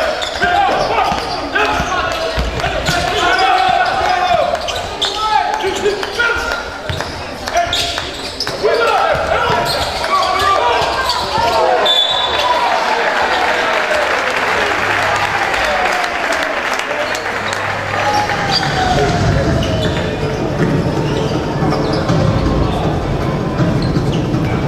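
A crowd of spectators murmurs and cheers in an echoing gym.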